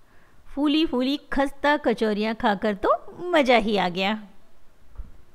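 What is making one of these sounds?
A middle-aged woman speaks close by with animation.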